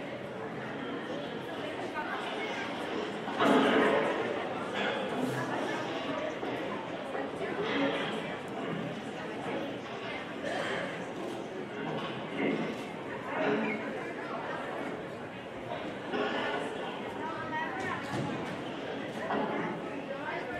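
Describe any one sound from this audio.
Music plays through loudspeakers in a large hall.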